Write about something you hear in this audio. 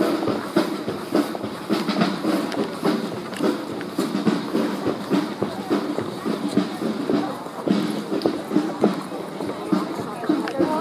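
Footsteps of a marching crowd shuffle and tap on a paved road outdoors.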